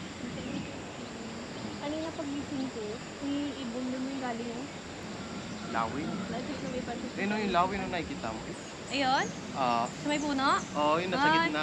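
Two young men talk quietly outdoors.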